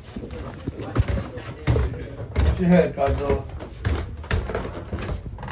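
Footsteps thump down wooden stairs.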